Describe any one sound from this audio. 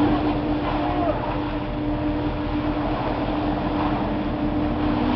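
Water jets spray and splash steadily.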